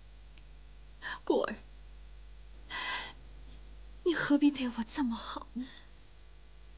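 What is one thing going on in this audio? A young woman speaks tearfully, close by.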